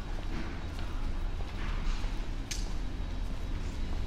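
A man's footsteps pass by on the pavement.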